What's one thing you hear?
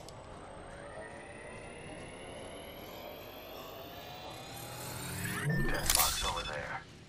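A healing device charges up with a rising electronic whine.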